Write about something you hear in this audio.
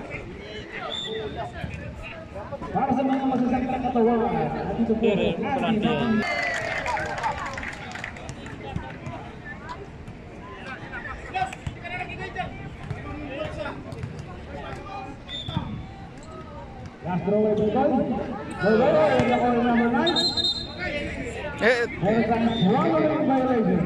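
A crowd of spectators chatters and cheers loudly outdoors.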